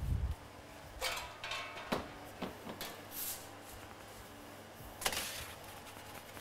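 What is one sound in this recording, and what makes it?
A metal pizza peel scrapes across a stone counter.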